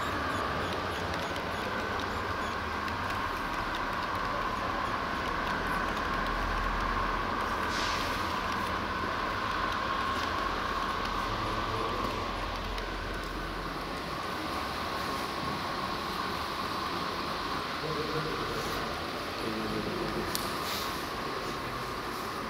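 A model train rolls along its track with a steady, even whir.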